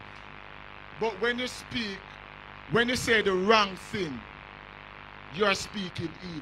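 An older man preaches with fervour into a microphone over loudspeakers, in a large echoing hall.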